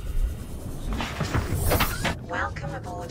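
A small submarine's hatch opens with a loud whoosh of air.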